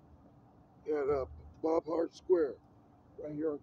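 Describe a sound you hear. A man speaks loudly and with animation close by, outdoors.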